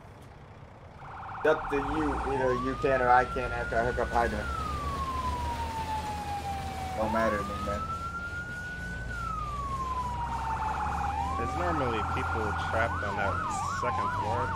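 A siren wails, rising and falling.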